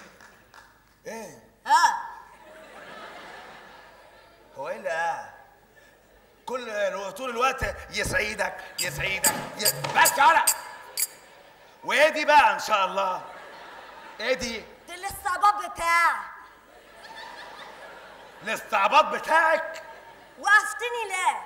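A young woman speaks with surprise on a stage.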